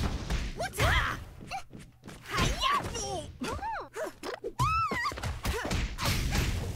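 High-pitched cartoon creatures squeal and cry out.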